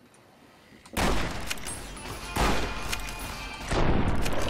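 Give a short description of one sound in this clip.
A rifle fires a loud shot that echoes.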